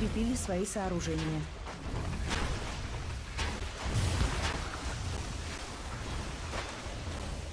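Spell effects crackle and whoosh during a fantasy battle.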